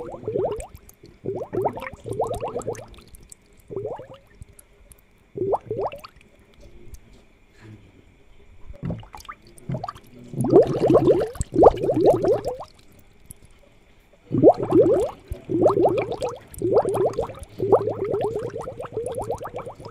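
Air bubbles gurgle through water.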